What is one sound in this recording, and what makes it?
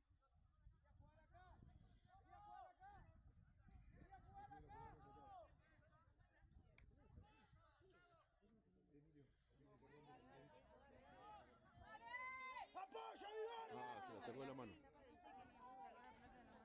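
Players call out and shout to each other across an open field.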